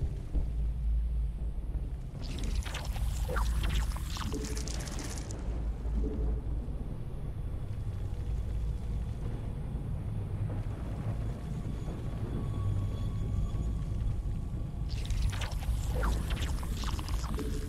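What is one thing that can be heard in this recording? A deep, steady droning rumble hums throughout.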